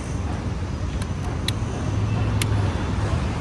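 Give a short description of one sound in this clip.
A key clicks as it turns in a motorcycle ignition.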